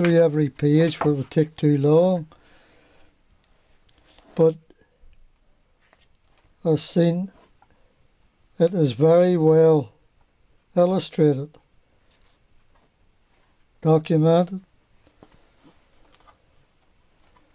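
Paper pages rustle softly as they are turned.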